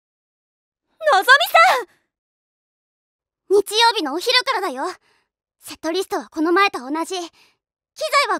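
A young girl speaks with animation and protest.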